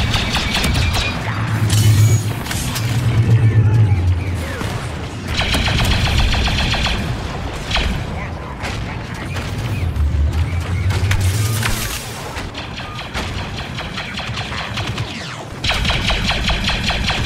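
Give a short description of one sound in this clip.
Blaster fire zaps in rapid bursts.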